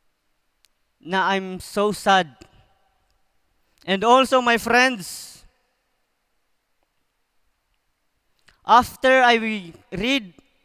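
A young man speaks into a microphone through loudspeakers, in short bursts with pauses.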